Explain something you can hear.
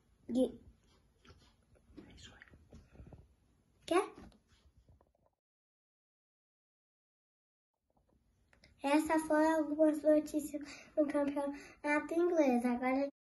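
A young boy talks close by, softly and then clearly and with animation.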